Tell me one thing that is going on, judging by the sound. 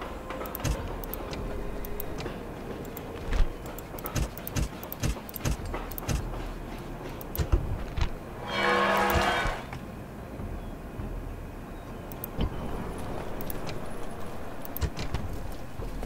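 Menu buttons click sharply, on and off.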